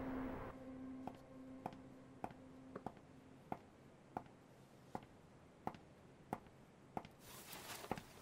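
High heels click steadily across a hard floor.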